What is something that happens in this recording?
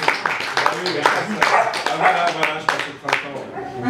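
A young man speaks loudly over the applause.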